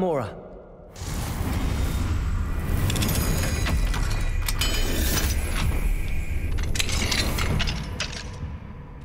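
Metal gears click and whir as a mechanism turns.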